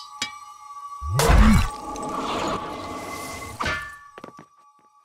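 A loud magical whoosh bursts out and swirls for a few seconds.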